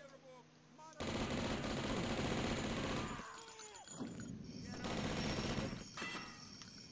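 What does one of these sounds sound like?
A machine gun fires in long rapid bursts.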